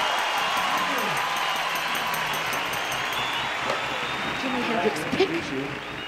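A crowd of young people screams and cheers loudly.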